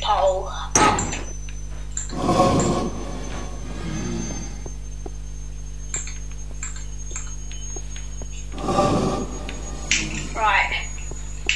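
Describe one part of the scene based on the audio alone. A fiery creature breathes with a rough, rasping rumble.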